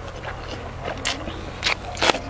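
A young man crunches a crisp cucumber close to a microphone.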